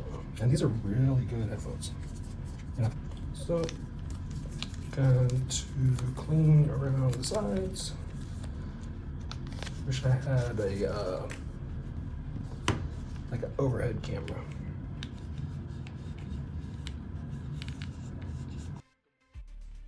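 Plastic headphone parts click and rattle as they are handled.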